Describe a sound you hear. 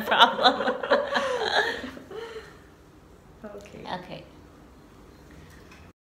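A middle-aged woman laughs close by.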